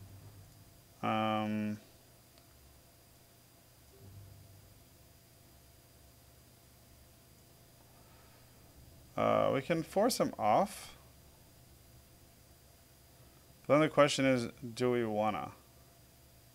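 A man murmurs and speaks in short bursts, calmly and close to a microphone.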